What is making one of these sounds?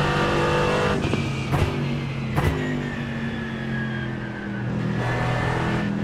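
A race car engine crackles and pops as it slows for a corner.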